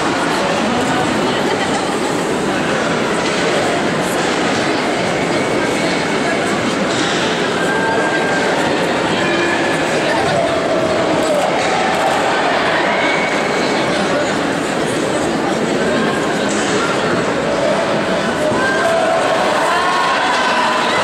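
A large crowd roars and chants in an echoing arena.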